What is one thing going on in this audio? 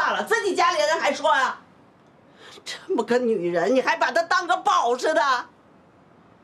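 An elderly woman speaks with animation, close by.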